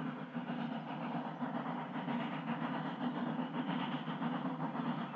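Steel wheels rumble and clatter on the rails.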